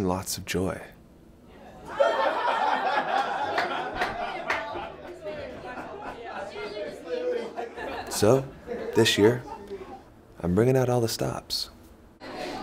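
A young man speaks calmly close by.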